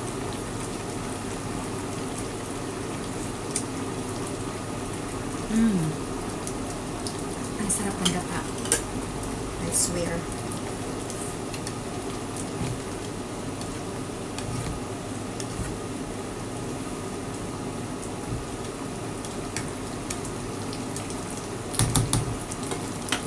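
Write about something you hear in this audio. A pan of sauce simmers and bubbles steadily.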